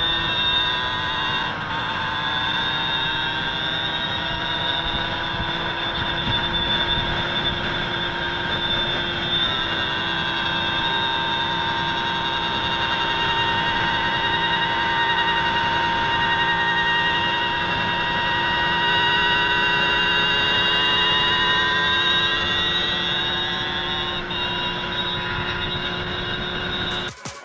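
A small motorbike engine whines loudly at high revs, close by.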